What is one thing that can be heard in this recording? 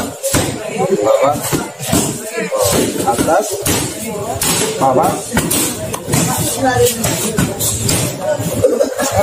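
Young men shout together as they punch.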